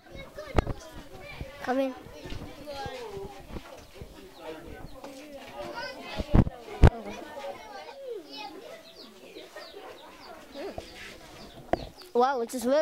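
Children chatter and murmur nearby.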